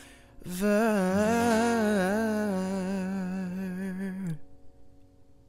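A young man sings a long held note close to a microphone.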